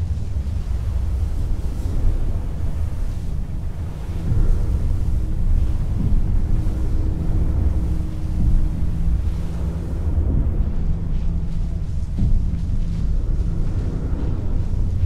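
Wind blows steadily across open sand.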